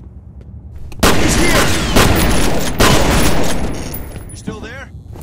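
A rifle fires a long, rapid burst of loud shots.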